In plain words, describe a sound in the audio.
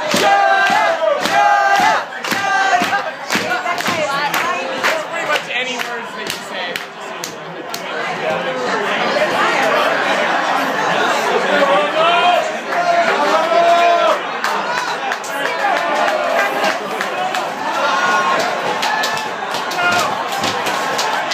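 A crowd of men and women chatter and shout loudly nearby.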